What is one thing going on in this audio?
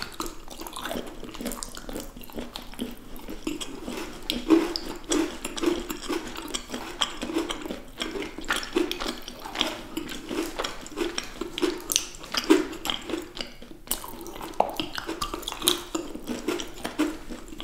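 Chocolate wafers crack and snap between fingers close to a microphone.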